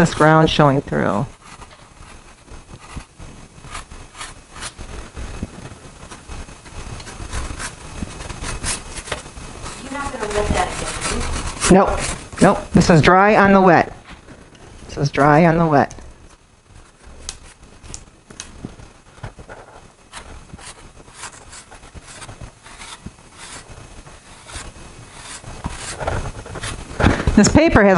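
Pastel chalk scratches softly on paper.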